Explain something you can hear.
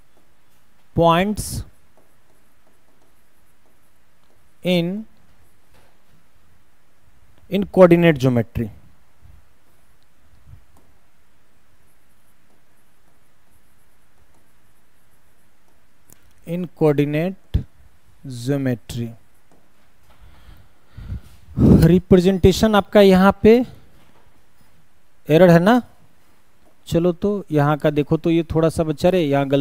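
A man speaks into a close microphone in short, calm bursts with long pauses.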